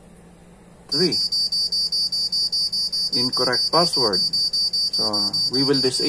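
A buzzer beeps in a fast, steady, high-pitched pulse.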